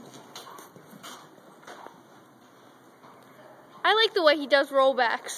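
A horse's hooves thud softly on dirt.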